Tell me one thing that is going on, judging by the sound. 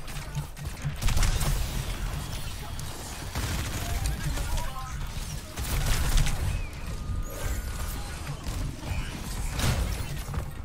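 Rapid gunfire bursts out in loud volleys.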